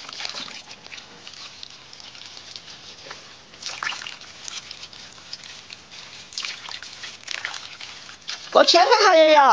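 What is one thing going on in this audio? A cloth scrubs and splashes on wet pork skin over water.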